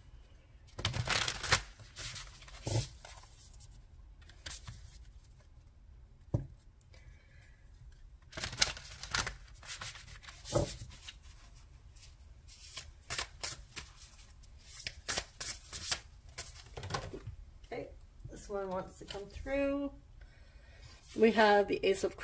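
Playing cards shuffle and flick against each other.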